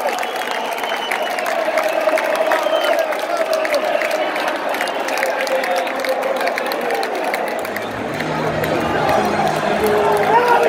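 A large stadium crowd sings and chants loudly in a wide open space.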